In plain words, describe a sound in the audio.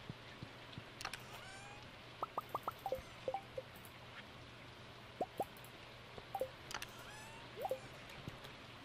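Soft game menu clicks tick and pop.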